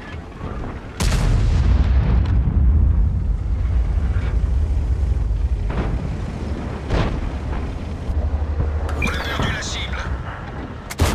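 A tank engine rumbles deeply.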